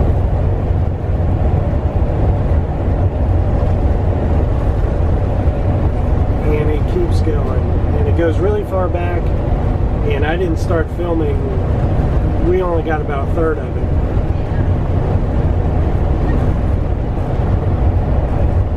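A car's engine and tyres rumble steadily on the road.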